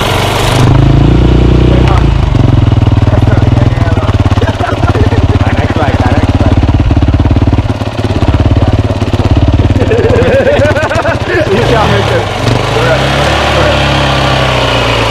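A dirt bike engine idles close by with a steady, throbbing rumble.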